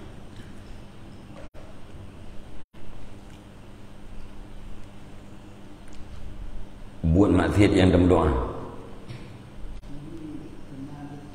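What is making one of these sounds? A middle-aged man speaks into a close microphone, steadily and with emphasis.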